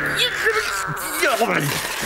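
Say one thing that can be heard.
A man grumbles crossly in a nasal voice.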